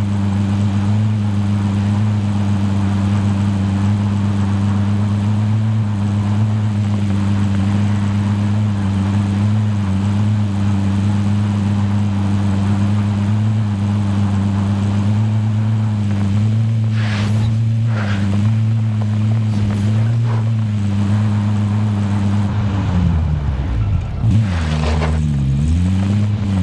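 A truck engine drones steadily and then revs up and down.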